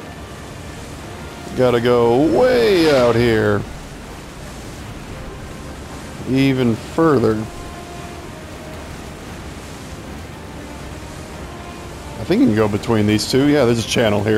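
Water splashes and churns behind a moving boat.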